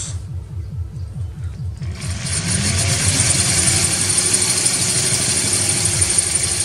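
An electric drill whirs steadily.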